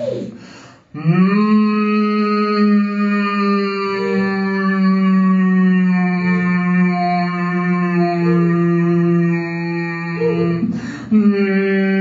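A man sings a long, steady note into a microphone, shifting its tone.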